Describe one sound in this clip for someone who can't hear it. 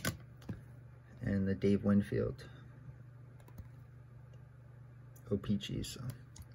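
A hard plastic case clicks and taps softly as it is handled.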